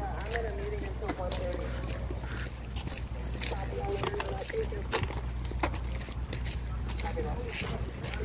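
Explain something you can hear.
Footsteps scuff on a pavement.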